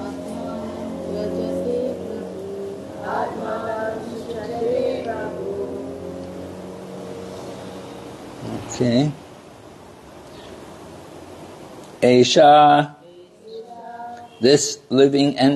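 An elderly man speaks into a microphone in a calm, chanting voice, heard through a loudspeaker.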